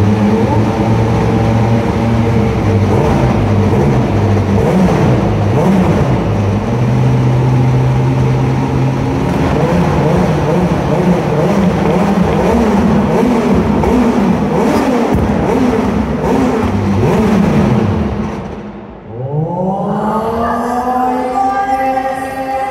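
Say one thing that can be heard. A racing car engine idles roughly and revs up and down loudly.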